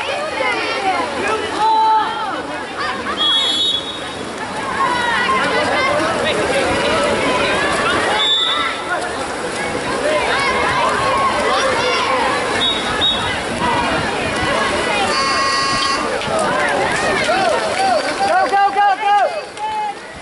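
Swimmers splash through water outdoors.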